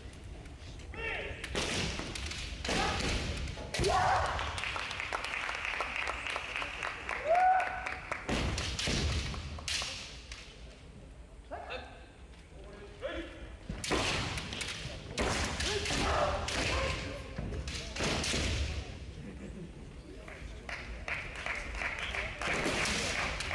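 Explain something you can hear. Bare feet stamp hard on a wooden floor.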